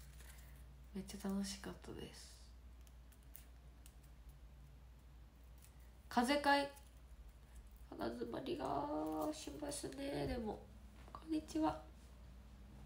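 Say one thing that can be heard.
A young woman speaks softly and casually, close to the microphone, with pauses.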